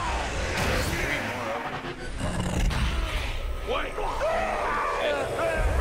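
Magic bursts crackle and whoosh.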